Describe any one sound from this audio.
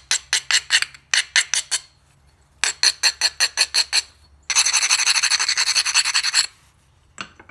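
A knife blade scrapes in quick rhythmic strokes across a sharpening stone.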